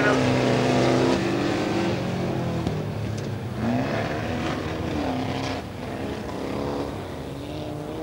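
Tyres skid on loose gravel.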